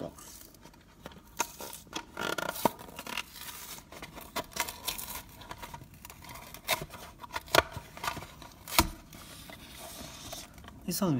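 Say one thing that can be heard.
Plastic packaging crackles as it is pulled apart.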